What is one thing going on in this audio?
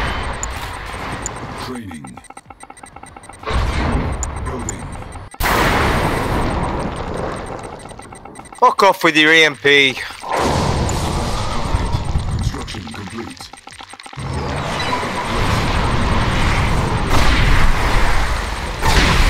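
Futuristic weapons blast and rumble in a battle.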